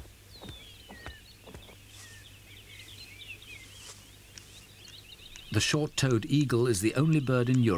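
A large bird of prey flaps its wings hard close by.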